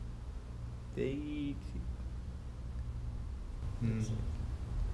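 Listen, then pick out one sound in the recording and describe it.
A young man speaks briefly close by.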